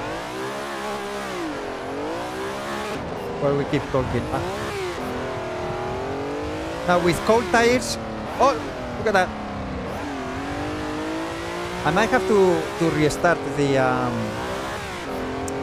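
A racing car engine revs up and down through gear changes.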